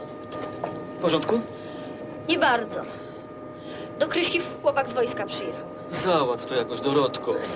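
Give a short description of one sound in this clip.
A woman answers quietly.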